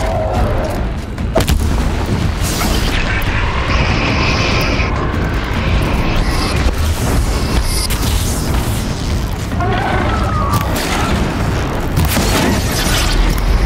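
A bowstring snaps as arrows are loosed.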